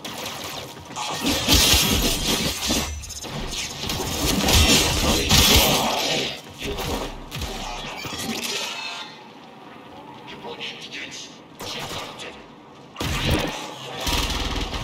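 Blades whoosh and strike in quick bursts.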